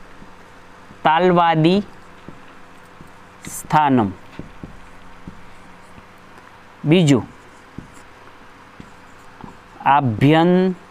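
A man recites words aloud in short bursts, close by.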